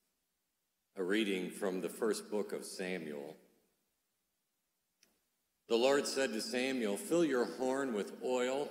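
A middle-aged man chants through a microphone.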